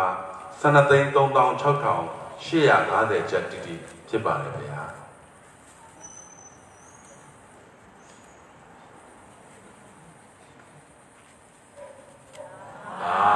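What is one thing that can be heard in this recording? A man chants through a loudspeaker.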